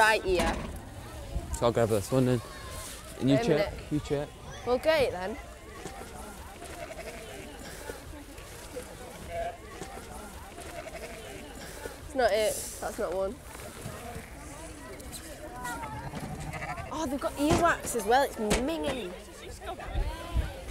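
A crowd murmurs outdoors.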